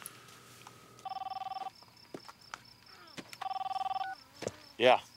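A phone rings with a repeated electronic tone.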